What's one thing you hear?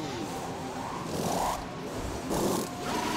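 Pneumatic wheel guns whir in short bursts.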